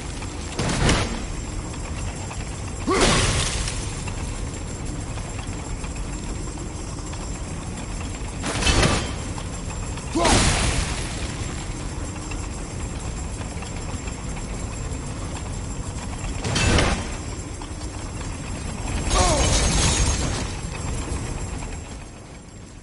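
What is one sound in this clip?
A heavy metal wheel rumbles and grinds as it turns.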